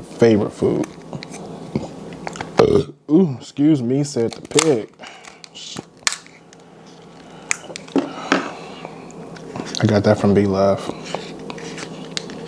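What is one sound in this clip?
Crab shells crack and snap under a cracker.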